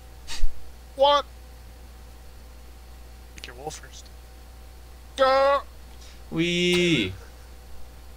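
A young man speaks in short bursts through a microphone.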